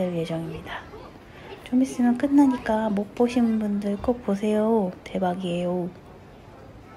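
A child sings loudly close by.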